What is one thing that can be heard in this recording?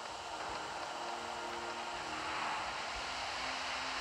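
A waterfall rushes steadily nearby.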